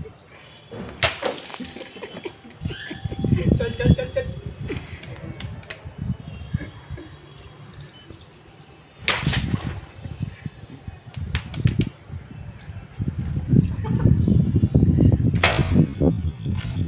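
A water balloon bursts with a splash on a young man's head.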